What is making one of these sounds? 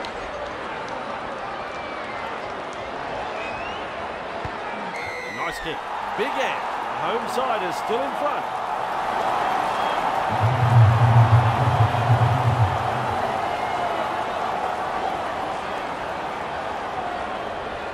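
A large stadium crowd roars steadily, swelling louder for a few seconds before easing off.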